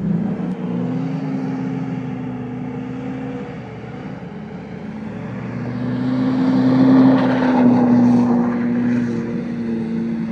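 A car engine revs hard from a short distance away.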